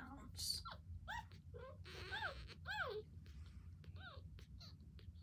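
A newborn puppy squeaks and whimpers in short, high cries.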